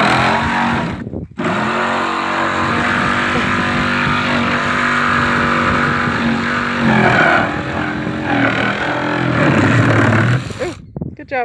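A power drill whirs steadily, speeding up and slowing down.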